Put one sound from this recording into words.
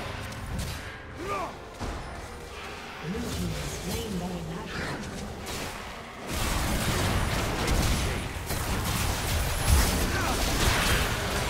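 Magic blasts and weapon hits crackle and boom in a busy fight.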